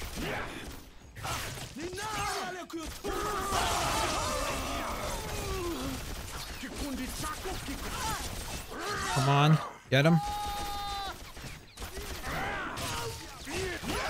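Creatures snarl and shriek.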